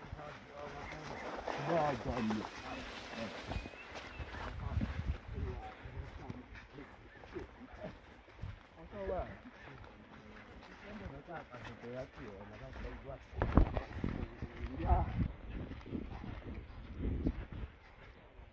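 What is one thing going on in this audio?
Men talk and call out to each other nearby.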